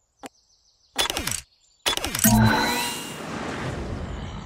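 Loud game sound effects and music burst in as a level begins.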